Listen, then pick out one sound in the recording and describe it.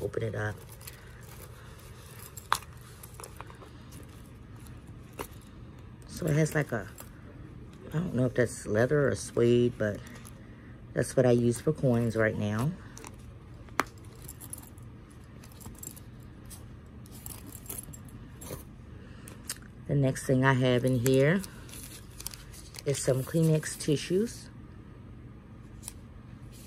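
Items rustle and shift inside a handbag.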